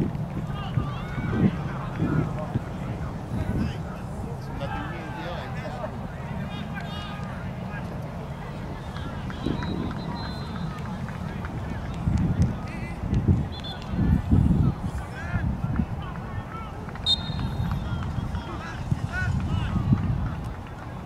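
Young players shout to each other across the field in the distance.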